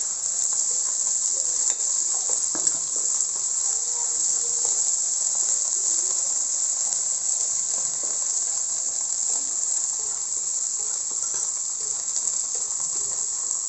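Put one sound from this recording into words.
Food sizzles as it fries in a wok.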